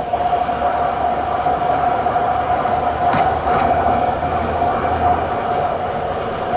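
A diesel truck engine drones as the truck drives along a road.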